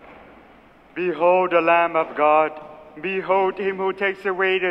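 A man chants in sustained notes through a microphone in a large echoing hall.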